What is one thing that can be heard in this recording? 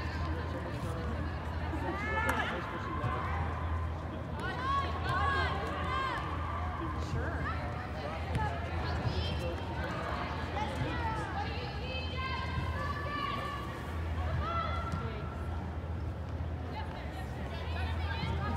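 Young women shout and call out across a large echoing indoor hall.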